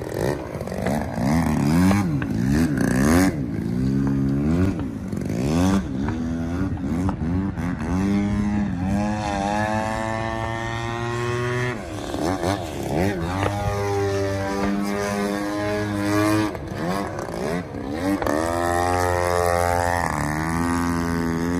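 A model airplane engine whines loudly, rising and falling in pitch as the plane swoops overhead.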